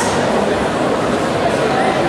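A second man speaks into a microphone through loudspeakers.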